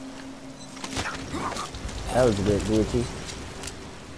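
A man struggles and grunts as he is grabbed.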